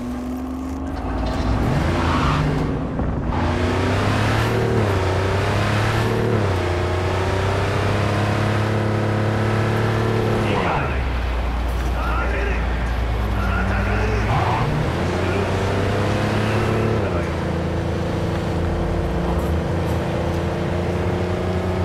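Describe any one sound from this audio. A car engine revs hard and rises in pitch as the car speeds up, dropping with each gear change.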